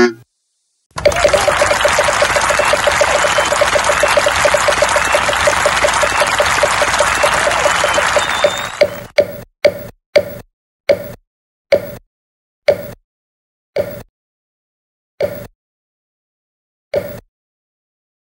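A prize wheel ticks rapidly as it spins, then slows to single clicks and stops.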